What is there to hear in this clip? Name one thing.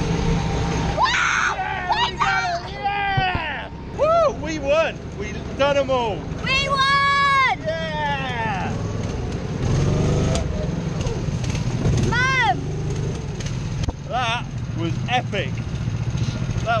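A man shouts and whoops excitedly close by.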